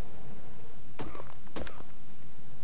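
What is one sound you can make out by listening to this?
A stone pick strikes rock with sharp knocks.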